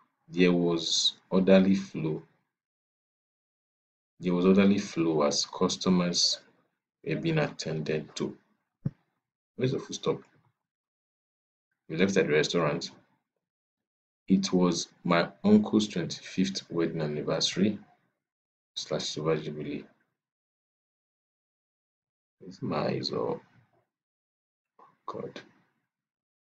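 A man speaks calmly over an online call, reading out in short phrases with pauses.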